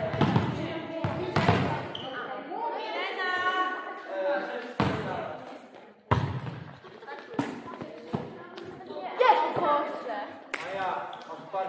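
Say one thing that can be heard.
A volleyball thuds against hands and the floor.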